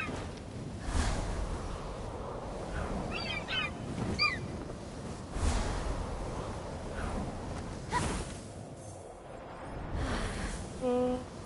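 Wings flap with short whooshing bursts.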